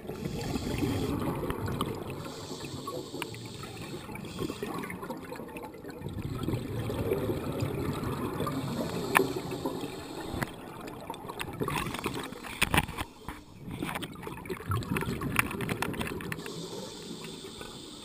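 Scuba breathing bubbles gurgle and rumble steadily underwater.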